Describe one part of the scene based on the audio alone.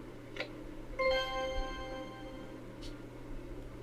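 A short chime of bright tones plays.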